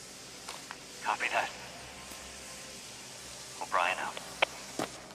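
A man's voice answers through a handheld radio.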